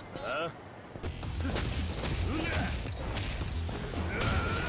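Fists thump hard in a brawl.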